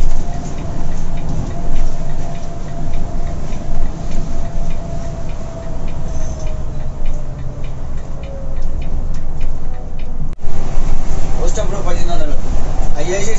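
A diesel coach engine drones while cruising, heard from inside the cab.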